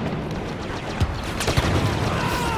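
Laser bolts hit nearby with sharp cracks.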